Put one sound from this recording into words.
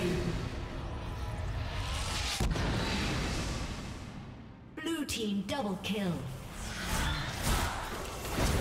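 Video game spell effects whoosh and crackle.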